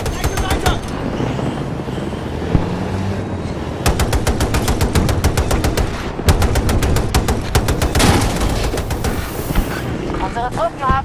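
A mounted heavy gun fires in rapid bursts.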